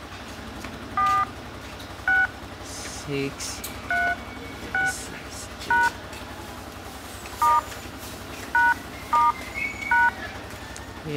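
A phone keypad beeps with short dialing tones as buttons are pressed.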